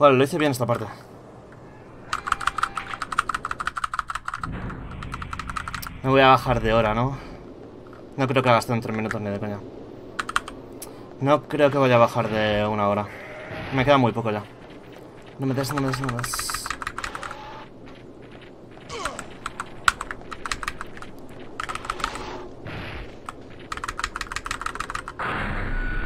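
Keys on a keyboard click rapidly.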